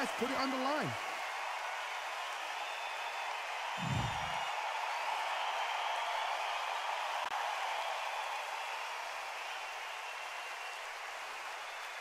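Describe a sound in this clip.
A large crowd cheers and murmurs steadily in an arena.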